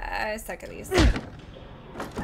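A wooden training dummy is struck with a sharp knock.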